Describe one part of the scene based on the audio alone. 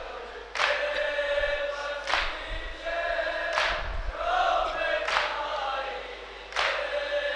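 A group of young men chant together through a microphone in a large echoing hall.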